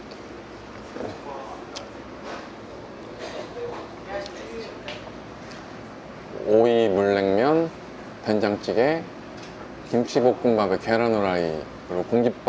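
A young man speaks close to the microphone, quietly at first and then loudly with animation, drawing out his words.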